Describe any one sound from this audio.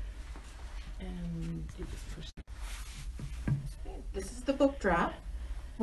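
A middle-aged woman speaks calmly into a microphone close by.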